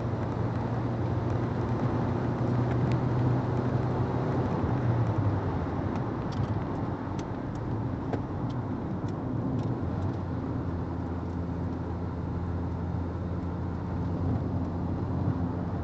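A car engine hums steadily from inside the cabin, rising and falling in pitch as it speeds up and slows.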